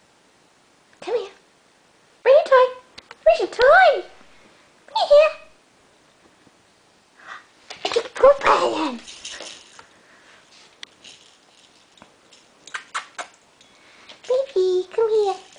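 A small dog yelps and whines playfully in short bursts.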